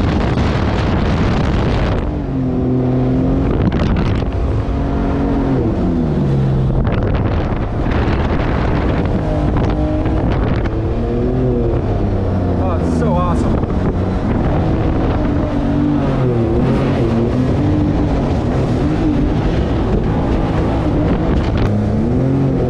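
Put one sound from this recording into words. A boat engine drones and revs up and down.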